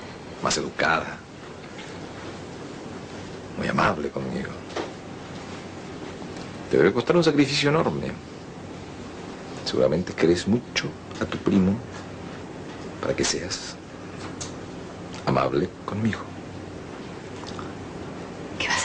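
A woman speaks with emotion close by.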